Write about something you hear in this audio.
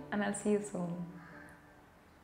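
A young woman speaks calmly and warmly, close by.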